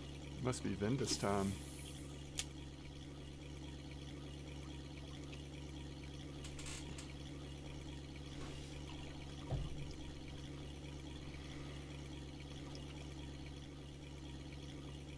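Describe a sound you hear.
A small boat motor hums steadily.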